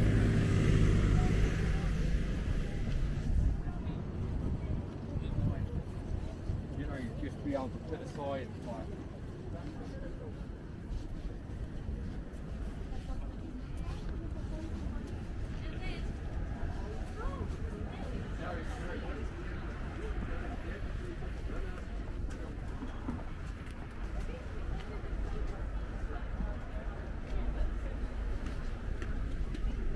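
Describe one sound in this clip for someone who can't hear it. Footsteps walk steadily on pavement.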